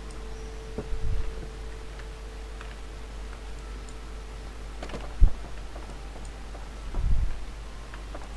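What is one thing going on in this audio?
Wooden boxes thud as they are set down.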